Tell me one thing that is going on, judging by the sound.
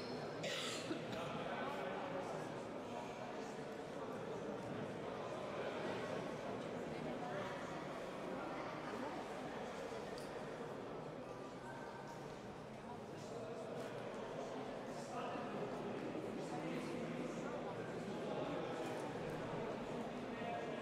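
A crowd of voices murmurs and chatters in a large echoing hall.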